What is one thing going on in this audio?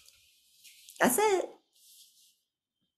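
A woman laughs softly over an online call.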